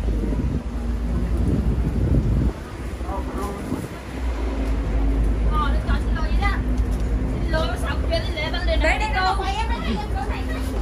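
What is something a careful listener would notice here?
Footsteps tap along a pavement.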